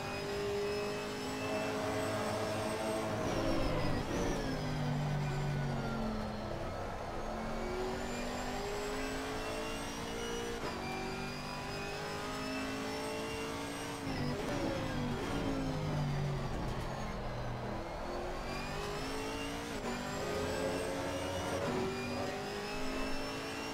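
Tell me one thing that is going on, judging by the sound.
A racing car engine roars, revving up and dropping sharply with each gear change.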